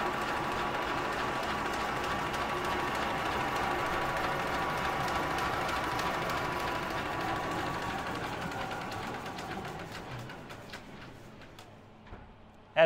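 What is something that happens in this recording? A machine hums steadily, then winds down and fades away.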